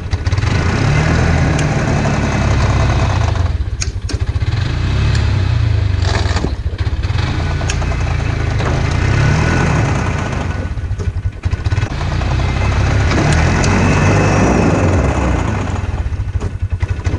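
A snowmobile engine roars and rumbles up close.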